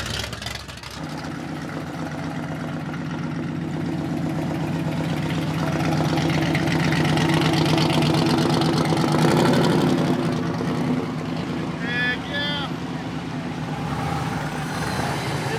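A powerful car engine idles loudly and unevenly close by.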